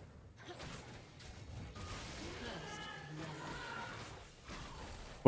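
Game spells whoosh and crackle in quick bursts.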